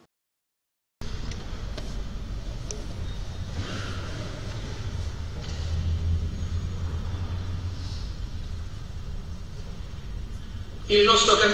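A congregation murmurs and shuffles quietly in a large echoing hall.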